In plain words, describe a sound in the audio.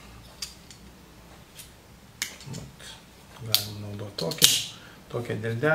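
Small objects click and tap in a man's hands.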